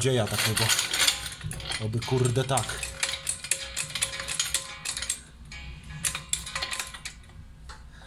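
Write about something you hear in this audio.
A metal car jack clanks and scrapes as it is set in place.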